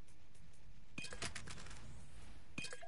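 A game menu opens with sharp clicks and chimes.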